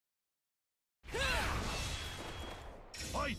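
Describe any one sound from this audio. Swords clash and ring.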